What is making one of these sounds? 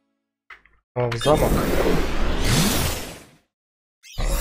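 A bright magical whoosh swells and fades away.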